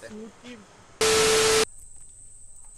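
Television static hisses loudly for a moment.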